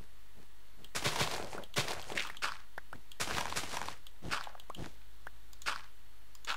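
A pickaxe breaks stone blocks with crunching, crumbling bursts.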